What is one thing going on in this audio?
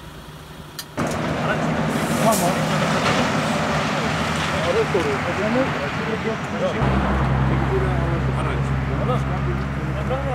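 Road traffic passes in the background outdoors.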